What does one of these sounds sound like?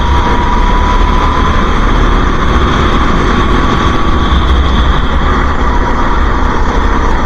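A small kart engine buzzes loudly at high revs.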